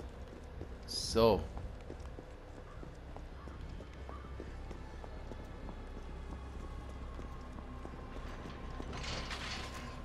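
Footsteps run on wet pavement.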